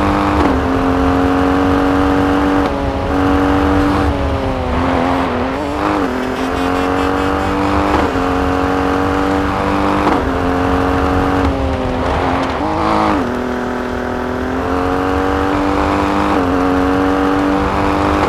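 A rally SUV engine races at full throttle, shifting up and down through the gears.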